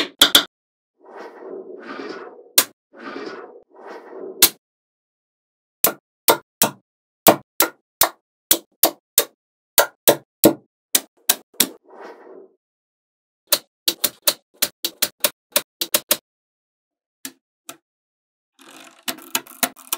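Magnetic balls rattle and rustle under a hand.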